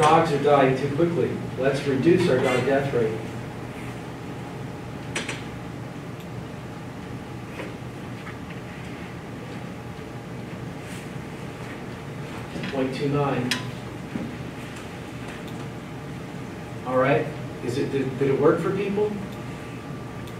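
A man speaks calmly in a room with a slight echo, in short bursts with pauses.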